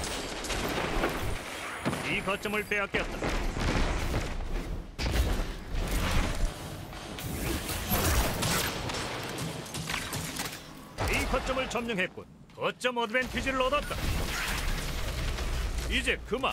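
Guns fire in short, sharp bursts.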